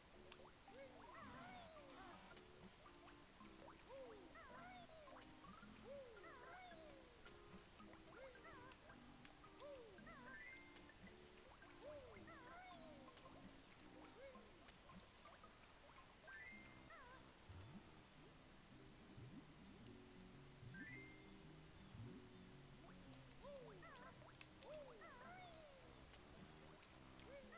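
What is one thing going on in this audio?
Bouncy video game music plays steadily.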